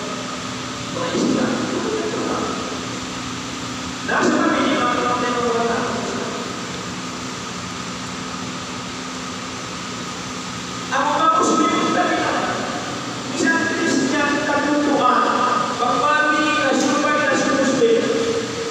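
A man speaks calmly into a microphone, heard through a loudspeaker in an echoing room, with long pauses.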